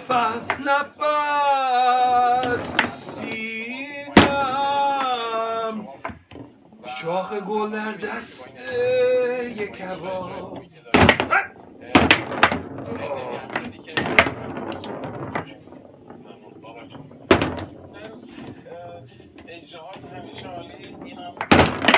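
A plastic ball clacks against the wooden figures and walls of a table football game.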